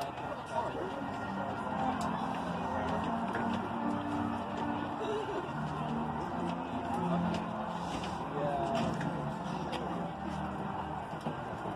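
A marching band plays sustained brass notes in the distance.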